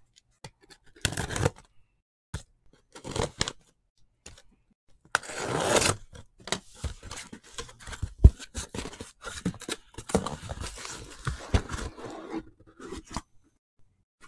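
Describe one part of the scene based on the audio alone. Cardboard scrapes and rustles as a case is opened.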